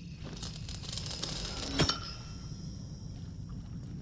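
A metal gate creaks and clanks open.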